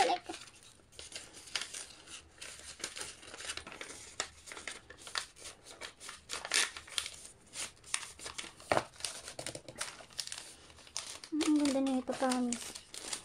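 Hands rustle and crinkle paper and plastic wrapping.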